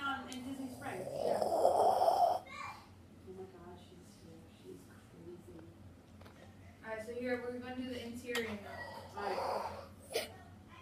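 A young boy coughs into his hand.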